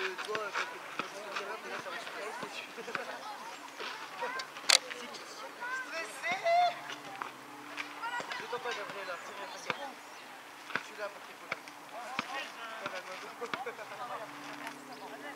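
Spectators chatter and call out nearby outdoors.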